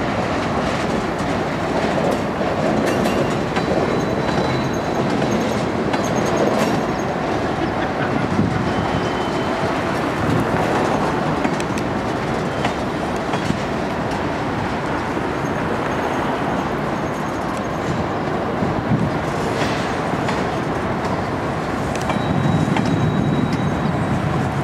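Steel wheels clack over rail joints.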